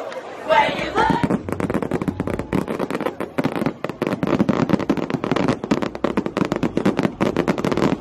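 A large crowd cheers in the distance.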